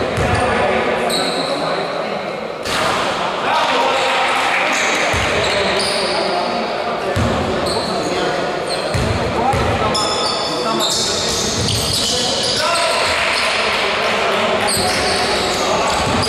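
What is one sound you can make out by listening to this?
Sneakers squeak sharply on a wooden court in an echoing hall.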